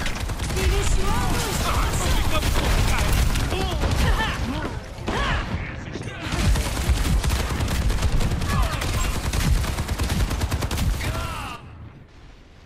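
Gunfire rattles rapidly with loud explosions.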